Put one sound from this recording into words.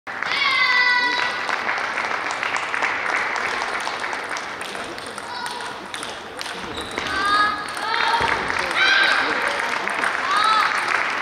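Table tennis balls tap against tables and paddles.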